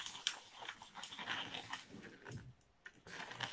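A rubber balloon squeaks as it is twisted.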